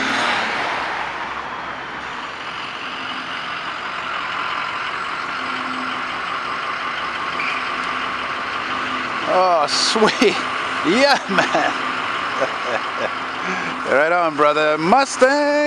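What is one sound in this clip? A school bus engine idles nearby.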